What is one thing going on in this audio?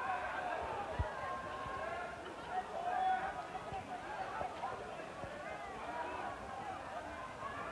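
A crowd of young men and women talks and shouts outdoors.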